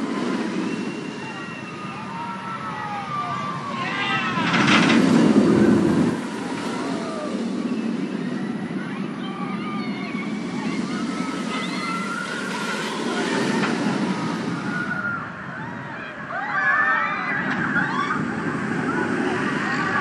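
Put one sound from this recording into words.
A roller coaster train roars along its track.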